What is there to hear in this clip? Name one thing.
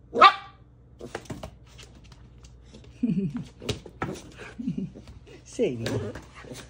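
Paws tap and scuffle on a wooden floor.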